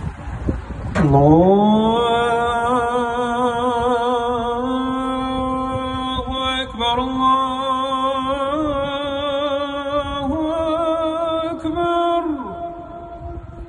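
A man sings a long, melodic call through a loudspeaker, heard outdoors.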